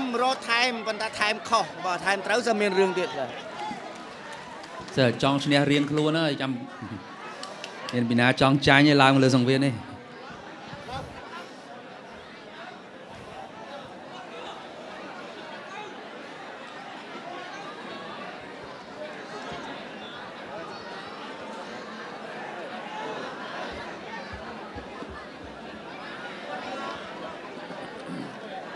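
A large crowd murmurs in a big echoing hall.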